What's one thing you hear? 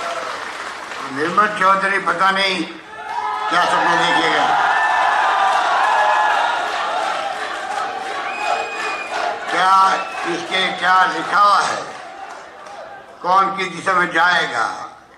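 An elderly man speaks calmly into a microphone, heard through loudspeakers.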